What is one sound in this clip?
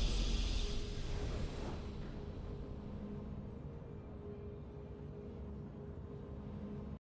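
A triumphant victory fanfare rings out and slowly fades.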